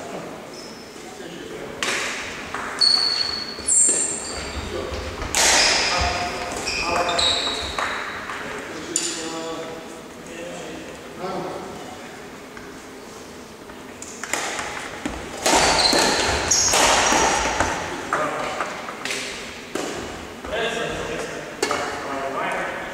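Badminton rackets strike a shuttlecock in an echoing sports hall.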